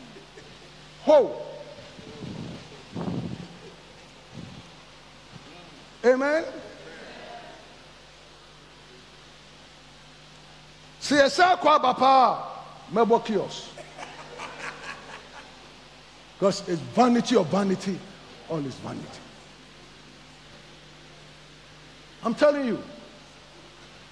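A man preaches with animation through a headset microphone, in bursts with long pauses.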